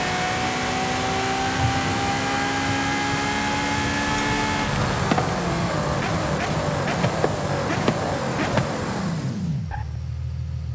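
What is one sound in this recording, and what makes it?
A racing car engine roars at high speed, then winds down.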